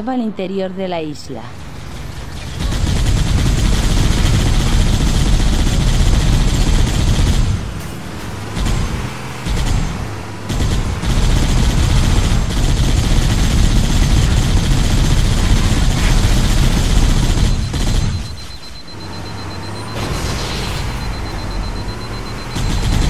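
A vehicle engine rumbles as it drives over rough ground.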